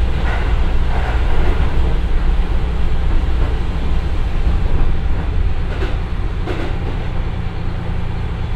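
A diesel train engine rumbles steadily.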